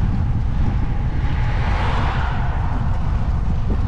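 A second car drives past and fades away.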